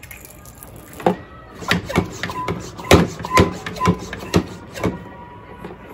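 A hand pump on a plastic sprayer clicks and squeaks as it is pumped.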